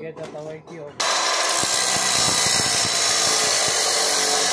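A cut-off saw screams loudly as it grinds through metal.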